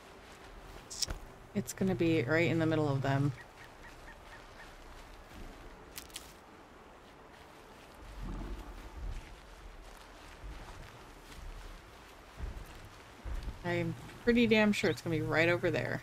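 Footsteps rustle through leafy plants and grass.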